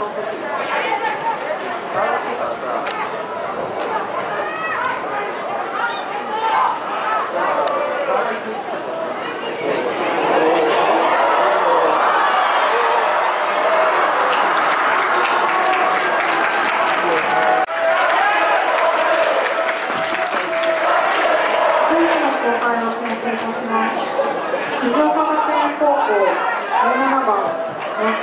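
A crowd of spectators shouts and chants outdoors, growing louder as play nears the goal.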